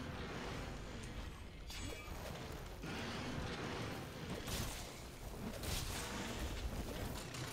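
A blade slashes and clangs.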